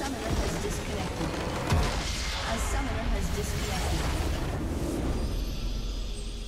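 A large structure in a video game explodes with a deep rumbling blast.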